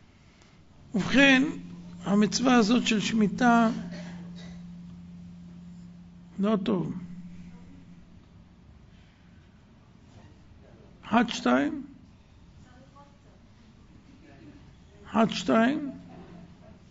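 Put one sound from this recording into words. A middle-aged man speaks with emphasis into microphones in a reverberant hall, in short loud bursts.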